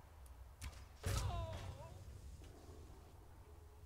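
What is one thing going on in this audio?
A fiery explosion booms and crackles.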